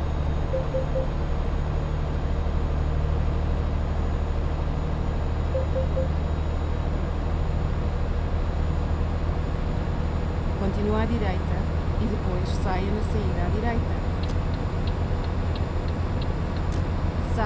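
A truck engine hums steadily on the road.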